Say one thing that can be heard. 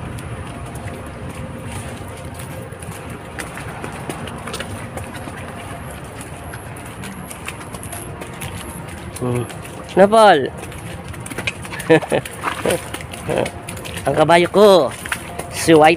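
A horse's hooves clop on a muddy dirt track.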